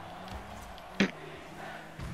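A ball is struck with a sharp thud.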